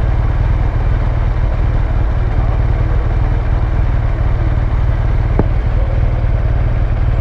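A motorcycle engine idles close by with a steady low rumble.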